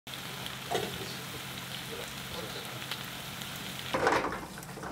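Sauce bubbles and sizzles in a pan.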